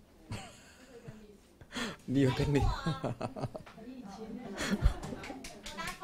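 A middle-aged man laughs softly.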